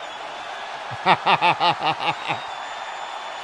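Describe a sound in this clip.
A man laughs loudly close to a microphone.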